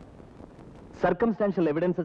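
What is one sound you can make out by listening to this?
A man speaks loudly and forcefully, close by.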